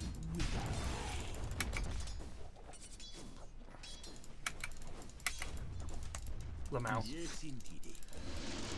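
Spell effects crackle and clash in a fast battle.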